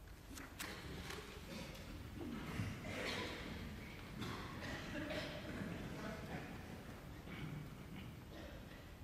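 A man speaks calmly in an echoing hall.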